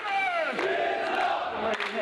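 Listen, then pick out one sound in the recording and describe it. A man shouts slogans with raised voice.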